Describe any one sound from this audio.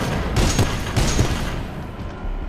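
A heavy gun fires a quick burst of loud blasts.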